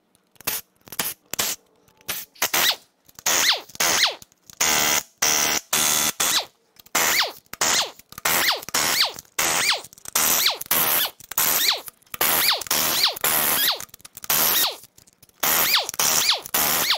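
A pneumatic impact wrench rattles in short, loud bursts, spinning down after each one.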